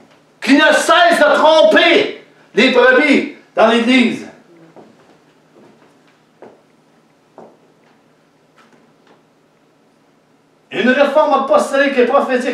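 An elderly man speaks loudly and dramatically nearby, with long pauses.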